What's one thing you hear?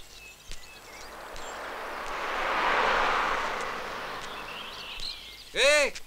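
A car drives past.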